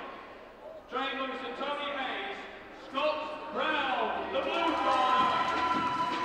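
A man announces loudly over a loudspeaker in a large echoing hall.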